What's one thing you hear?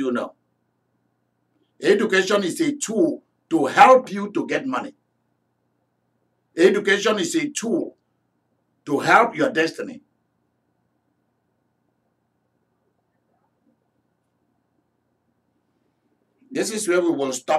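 A middle-aged man speaks with animation close to a microphone, pausing between phrases.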